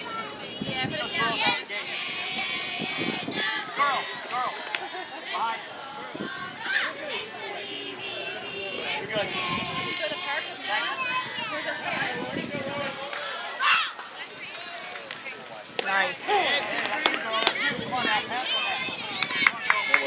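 A crowd of girls and young women chatter and cheer loudly nearby.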